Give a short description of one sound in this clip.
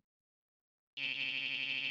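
A rapid electronic blipping plays steadily.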